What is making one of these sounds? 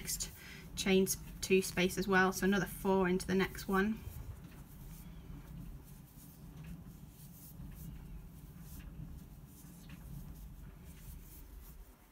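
A crochet hook softly works through yarn.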